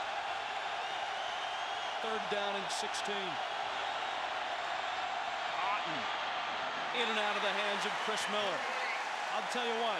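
A large crowd roars steadily in an open stadium.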